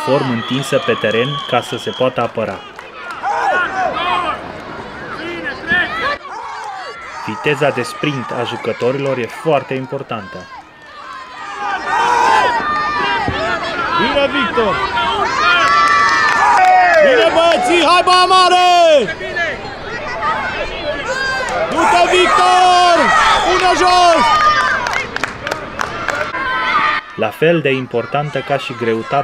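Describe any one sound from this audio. Children shout excitedly outdoors during a game.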